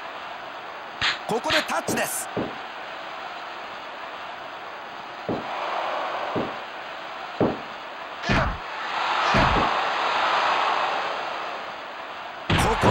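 Heavy thuds and slaps of wrestlers' blows ring out.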